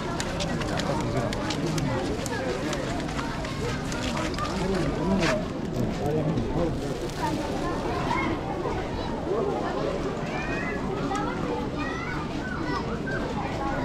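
Footsteps shuffle on a paved street.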